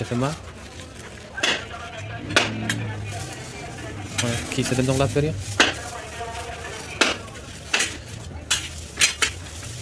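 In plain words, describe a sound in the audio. Foam food boxes creak and tap as they are handled.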